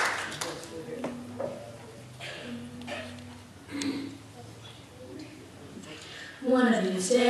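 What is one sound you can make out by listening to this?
Young girls talk quietly among themselves.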